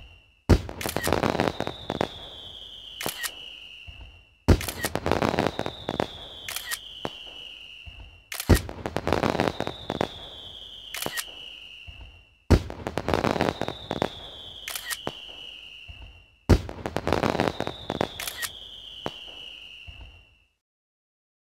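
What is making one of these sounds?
A game's completion jingle plays with a falling whistle, over and over.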